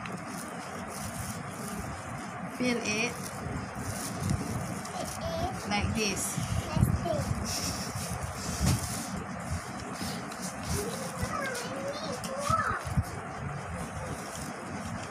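Hands rustle and crinkle stiff leaves while folding them.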